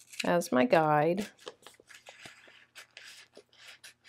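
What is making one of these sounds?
A sticker's backing peels off with a soft crackle.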